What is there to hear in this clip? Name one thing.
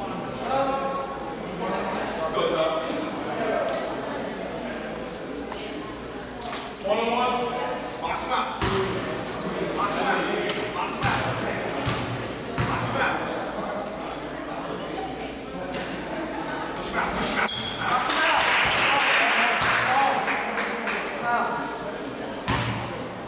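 Voices of spectators chatter in a large echoing gym.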